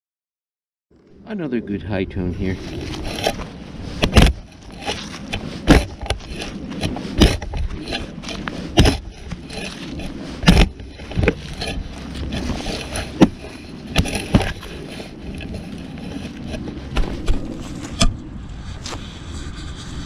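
A shovel cuts into grassy soil.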